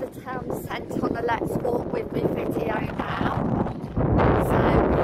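A young woman talks animatedly close to the microphone.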